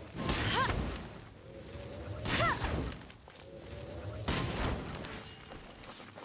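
Fiery blasts burst and crackle in quick succession.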